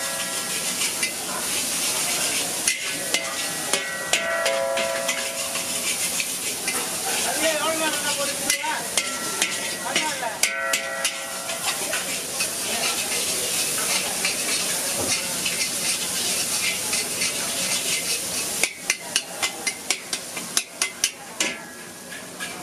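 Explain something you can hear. A metal spatula scrapes and clanks against a wok.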